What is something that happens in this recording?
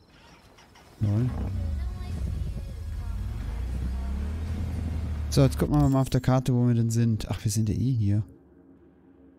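A motorbike engine roars and revs up.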